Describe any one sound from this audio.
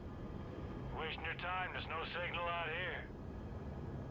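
A middle-aged man speaks calmly over a headset radio.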